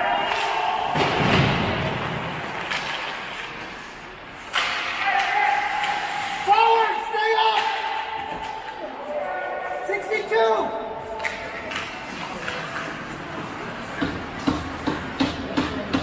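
A hockey stick smacks a puck on ice.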